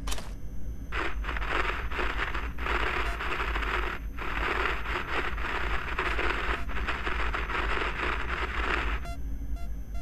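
A radio hisses with static as its dial is tuned.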